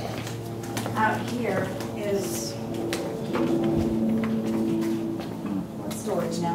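Footsteps tap on a hard floor as a woman walks.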